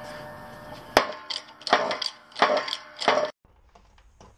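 Metal clanks sharply several times.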